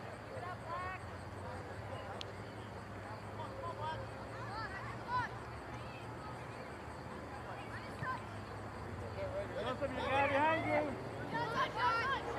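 Young players shout to each other far off across an open field.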